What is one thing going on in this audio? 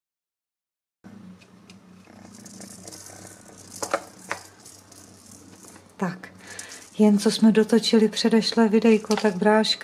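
Fabric rustles as a kitten paws at it.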